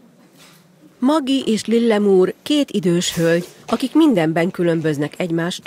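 A middle-aged woman speaks sharply.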